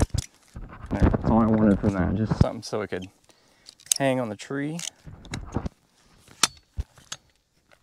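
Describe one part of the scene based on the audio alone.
A ratchet strap clicks as it is tightened.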